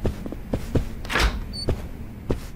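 A door swings open with a whoosh.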